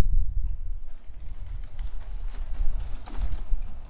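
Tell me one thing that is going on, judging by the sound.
A bicycle rolls past close by.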